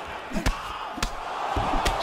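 A punch lands with a dull smack.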